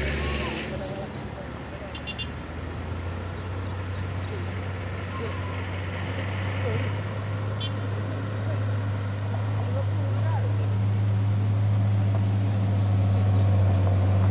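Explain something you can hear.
A bus engine rumbles, growing louder as it approaches.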